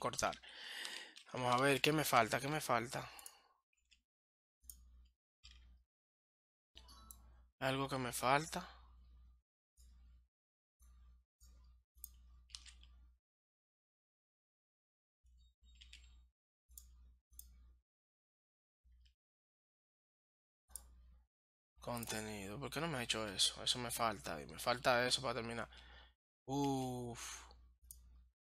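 A man talks into a close microphone in bursts, calmly and with animation.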